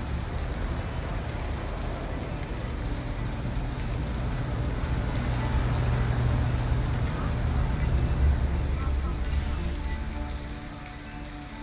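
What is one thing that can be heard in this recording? A vehicle engine rumbles as it drives closer.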